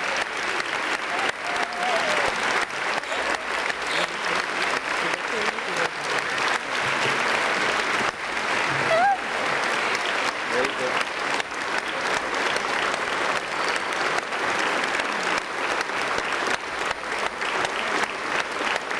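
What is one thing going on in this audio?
A large crowd applauds loudly and steadily in a big hall.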